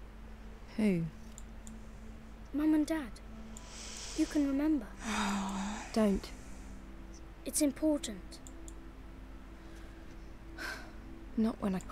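A young girl speaks with animation.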